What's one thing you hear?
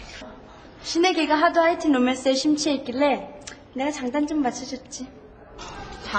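Another young woman talks cheerfully.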